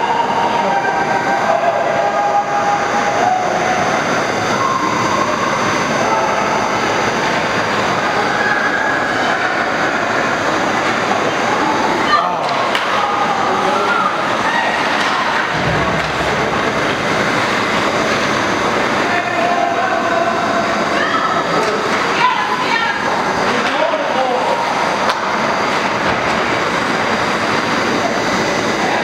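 Ice hockey skates scrape and hiss across ice in a large echoing rink.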